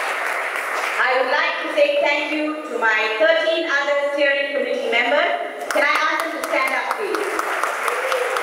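A woman speaks loudly and passionately into a microphone over a loudspeaker.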